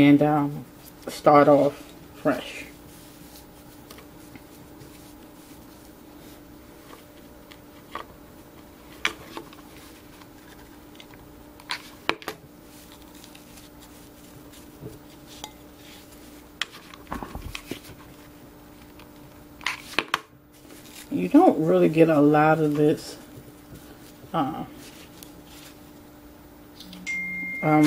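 Rope rubs and rustles against a glass jar.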